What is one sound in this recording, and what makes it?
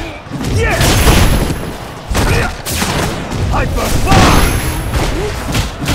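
Heavy punches and kicks land with loud, booming thuds.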